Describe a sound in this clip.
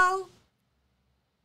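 A young woman speaks briefly and cheerfully into a microphone, close by.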